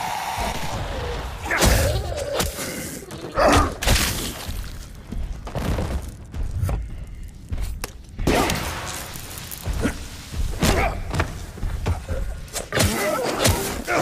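Zombies growl and snarl.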